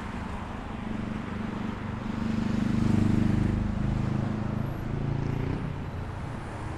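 A motorcycle rides past with a low engine rumble.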